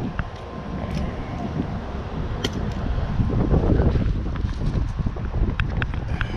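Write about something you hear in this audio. A metal grappling hook clinks and scrapes on concrete.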